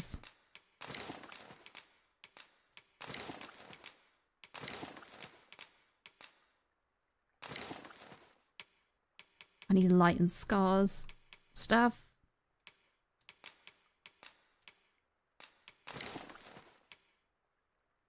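Soft menu clicks tick now and then as items are selected.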